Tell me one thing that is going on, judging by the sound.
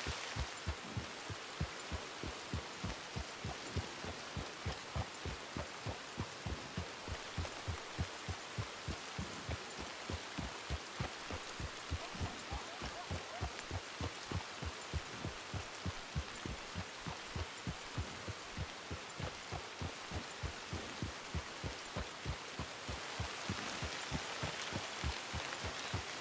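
Hooves thud steadily on a muddy track as a horse trots.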